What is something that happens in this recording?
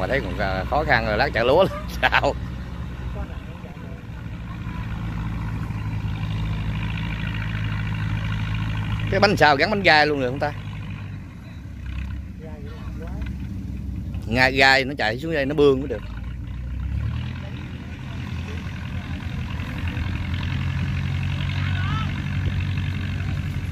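A tractor engine chugs steadily at a distance.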